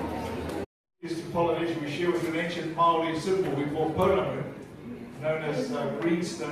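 A man speaks through a loudspeaker in an echoing hall.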